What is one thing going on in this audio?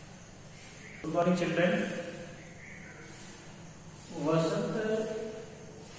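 A middle-aged man speaks calmly and clearly, as if teaching.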